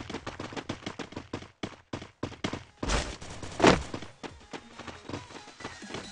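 Quick footsteps patter steadily as a game character runs.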